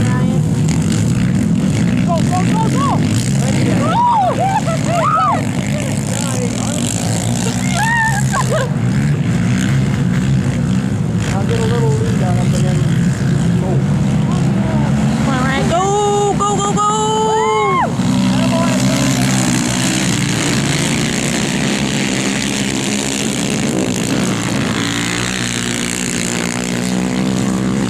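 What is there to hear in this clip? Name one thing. Quad bike engines roar and whine as they race past.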